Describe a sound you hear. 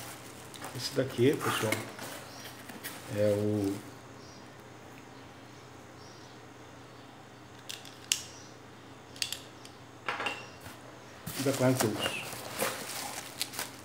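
Bubble wrap crinkles as it is handled.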